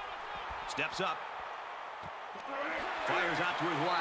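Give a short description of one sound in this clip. Padded football players collide in a tackle.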